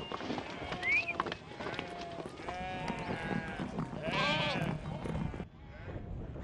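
A flock of sheep bleats loudly and repeatedly.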